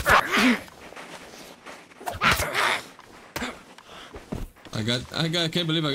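A blade swishes and thuds into a body.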